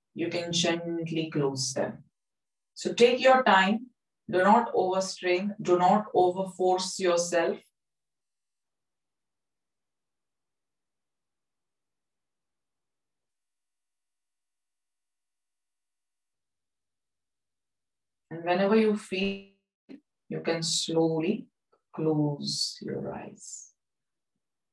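A woman speaks calmly and slowly into a close microphone, with long pauses.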